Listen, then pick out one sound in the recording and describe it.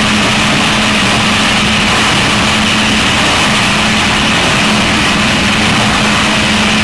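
A machine drones loudly and steadily with a low hum.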